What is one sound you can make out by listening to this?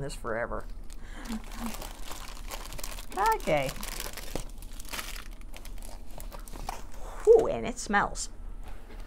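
A large plastic sheet crinkles and rustles as it is handled.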